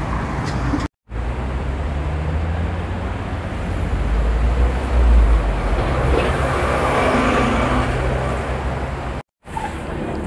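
Traffic rumbles past on a busy street outdoors.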